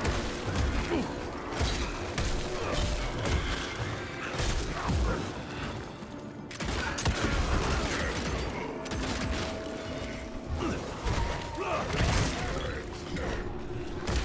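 Heavy blows and slashes thud against creatures in a fight.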